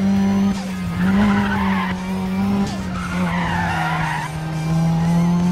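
Tyres screech as a car skids through a bend.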